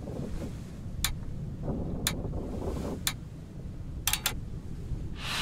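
Sharp stamping clicks sound one after another.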